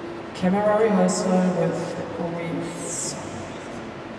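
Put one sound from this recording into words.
A young man speaks loudly in a large echoing hall.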